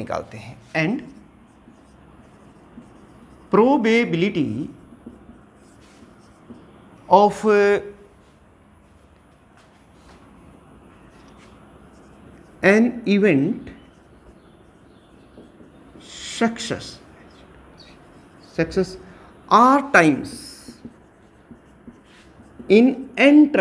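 A middle-aged man speaks calmly in short phrases, as if teaching, close by.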